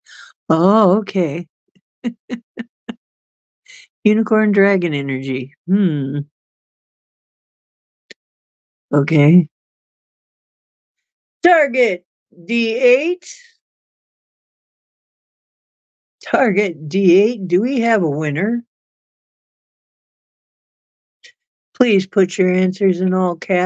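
A middle-aged woman speaks calmly and expressively into a microphone, close by, with pauses between phrases.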